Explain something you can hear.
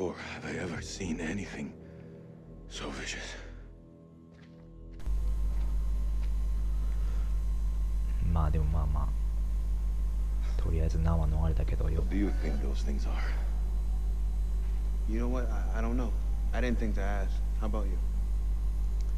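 A young man speaks in a low, tense voice.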